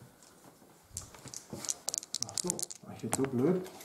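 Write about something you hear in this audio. Dice clatter and roll into a tray.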